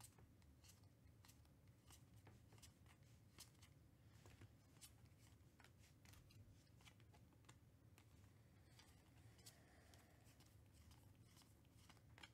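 Trading cards flick and slap softly as they are sorted by hand, close up.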